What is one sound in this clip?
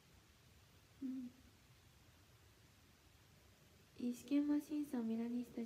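A young woman speaks briefly and softly into a close microphone.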